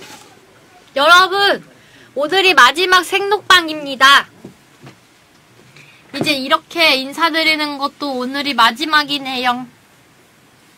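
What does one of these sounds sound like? A young woman speaks animatedly into a microphone.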